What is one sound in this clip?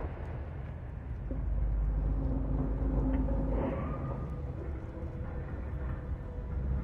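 A low wind rumbles steadily.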